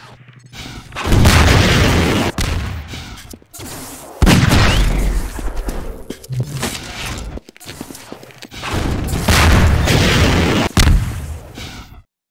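An explosion booms and echoes.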